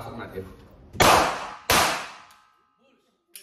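Gunshots crack loudly indoors with a short echo.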